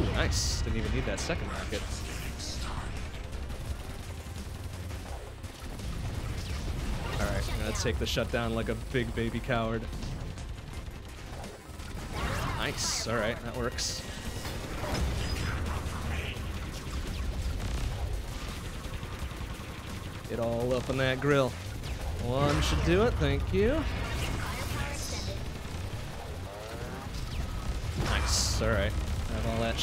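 Video game sound effects burst and zap.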